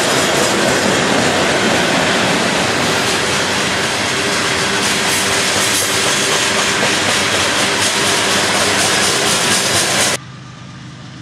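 Freight cars rumble and clatter loudly along the track.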